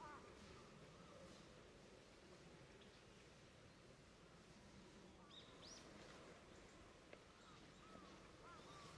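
A small bird rustles softly through dry leaves.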